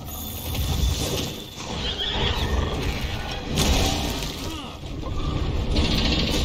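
Heavy blows and crashes sound as a warrior fights a huge monster.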